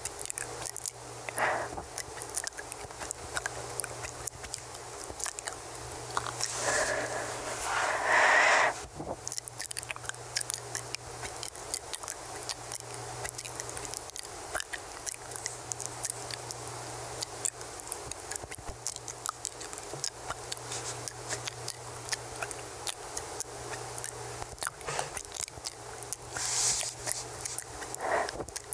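A young woman whispers softly and closely into a microphone.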